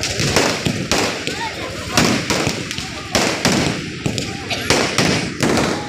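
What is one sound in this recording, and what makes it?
Fireworks bang loudly, close by, in rapid bursts.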